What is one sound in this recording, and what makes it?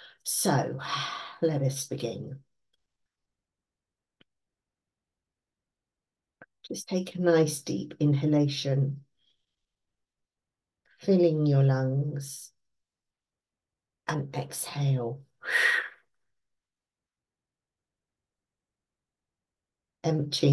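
An older woman speaks calmly in short phrases with pauses, heard through an online call.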